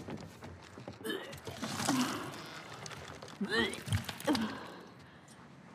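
A young woman retches loudly nearby.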